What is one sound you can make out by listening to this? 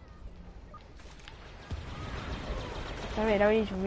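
Distant blaster fire and rumbling battle noise sound in the background.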